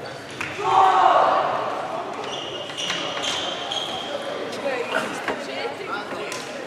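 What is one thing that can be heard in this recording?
Ping-pong balls click sharply on tables and bats in a large echoing hall.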